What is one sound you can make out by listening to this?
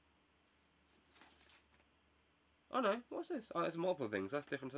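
A plastic package crinkles in a man's hands.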